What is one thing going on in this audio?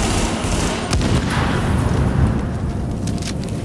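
An explosion booms and flames roar.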